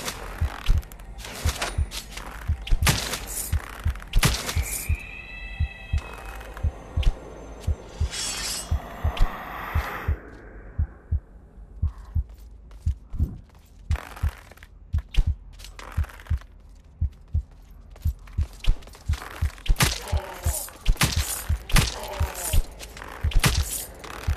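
A bowstring snaps as arrows are loosed again and again in a large echoing hall.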